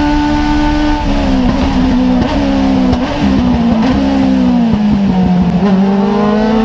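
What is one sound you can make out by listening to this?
A race car engine drops in pitch as the driver brakes and downshifts.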